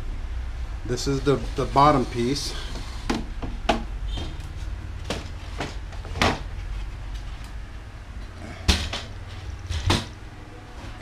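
A wooden gate knocks and clatters as it is moved by hand.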